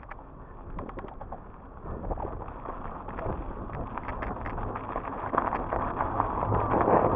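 Wind rushes past outdoors, growing louder.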